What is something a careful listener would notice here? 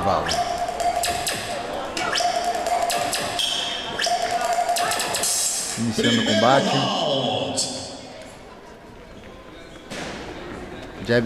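A crowd cheers and shouts in a hall.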